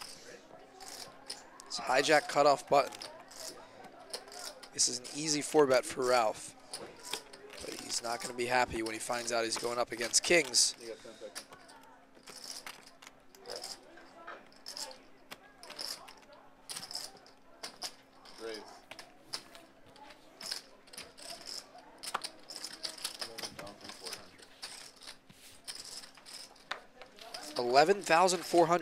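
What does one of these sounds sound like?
Poker chips click and clatter together.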